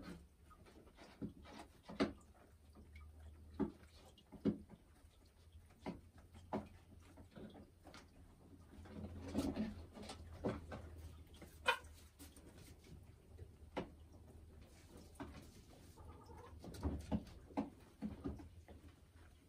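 A hen clucks softly close by.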